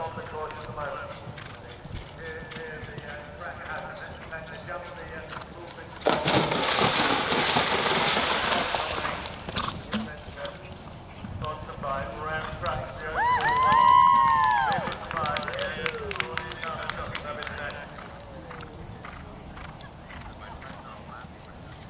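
A horse's hooves thud on grass at a gallop.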